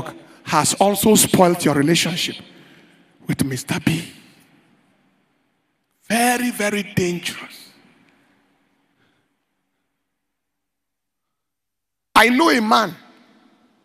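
A man preaches forcefully into a microphone in a large echoing hall, in bursts with pauses.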